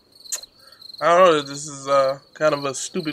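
A man speaks casually into a close microphone.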